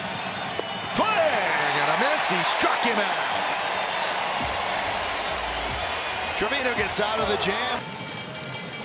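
A large crowd cheers and applauds outdoors.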